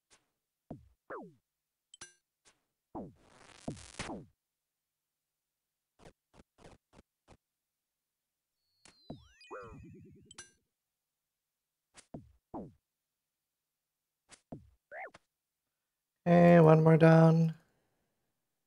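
Short game sound effects of hits and blips play in quick bursts.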